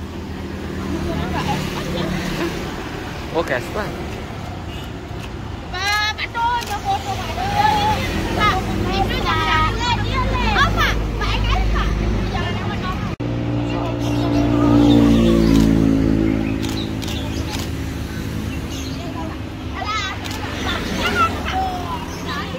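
Young girls talk and laugh close by, with animation.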